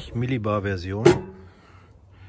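A metal lid clanks shut.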